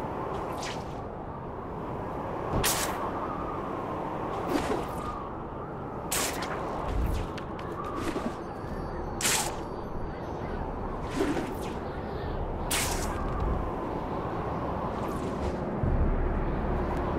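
Wind rushes steadily past.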